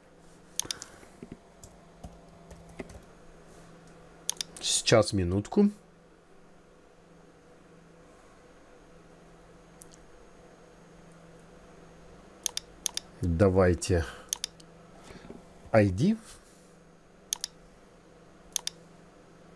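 Keys tap on a keyboard.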